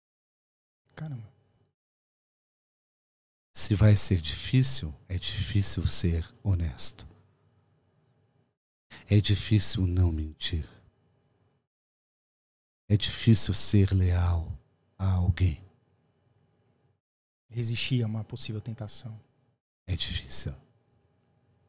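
A middle-aged man speaks calmly into a close microphone, with pauses between phrases.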